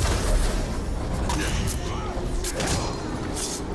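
A sword swooshes and clangs in a fight.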